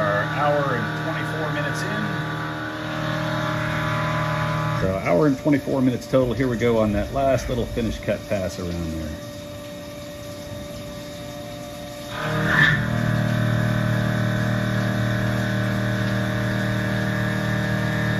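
A milling machine hums steadily.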